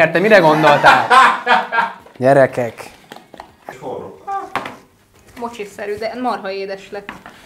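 A young woman laughs and talks close by.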